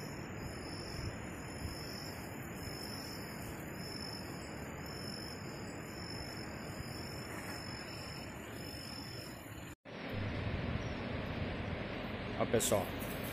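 A river flows and babbles steadily outdoors.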